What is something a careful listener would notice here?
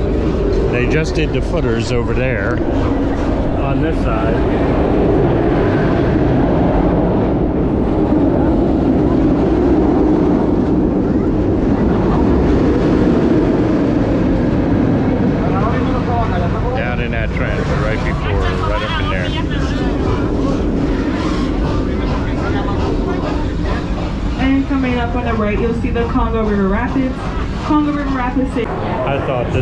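A tram rumbles and rattles along steadily.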